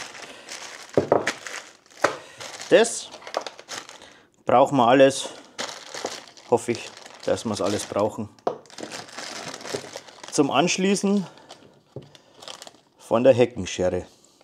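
Small metal parts clink together inside a plastic bag.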